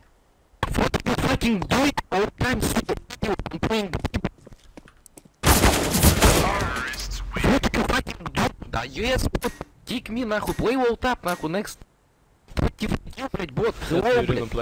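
A man talks loudly and with agitation into a close microphone.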